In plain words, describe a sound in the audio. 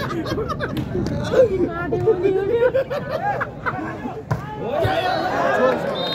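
A volleyball is struck with dull thuds.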